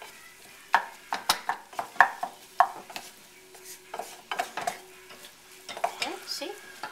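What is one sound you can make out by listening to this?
A wooden spoon scrapes and knocks against a pan while stirring.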